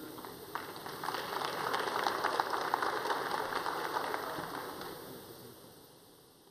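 An audience applauds in a large hall, then the applause fades.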